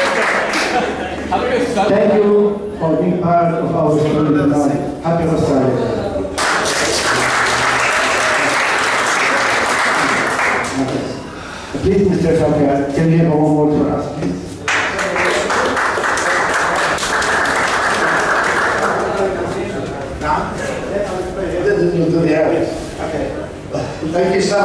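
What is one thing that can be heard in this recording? A man speaks through a microphone and loudspeaker.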